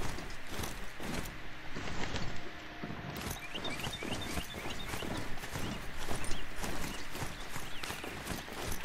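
A mechanical mount's hooves thud rapidly as it gallops.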